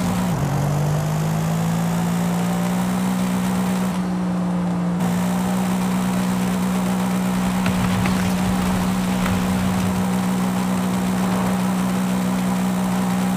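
A car engine hums steadily at high speed.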